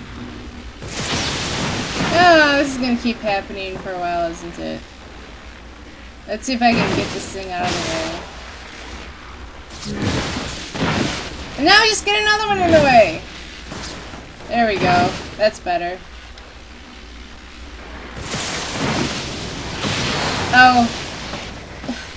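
An explosion bursts with a loud roar.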